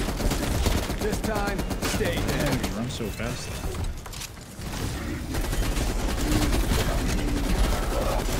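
Zombies growl and snarl.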